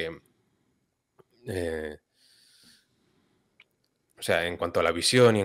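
A young man speaks calmly over an online call, with pauses.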